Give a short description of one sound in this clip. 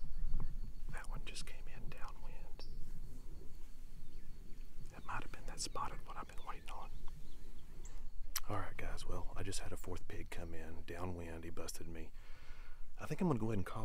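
A man speaks in a low, hushed voice close to a microphone.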